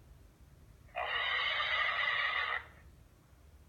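A pig squeals loudly.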